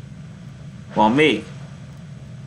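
A young man speaks briefly into a nearby microphone.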